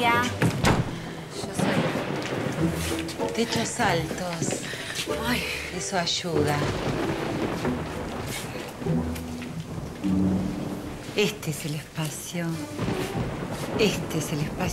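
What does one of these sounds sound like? An older woman talks with animation nearby.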